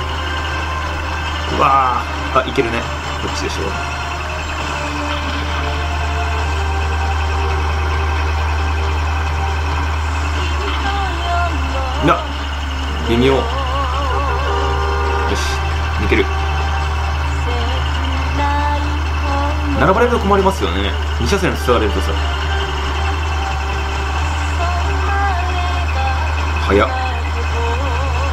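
A car engine hums steadily at low speed.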